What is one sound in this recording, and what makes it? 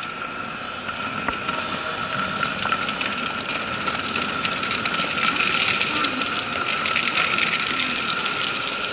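Suitcase wheels roll and rattle along a hard floor in a large echoing hall.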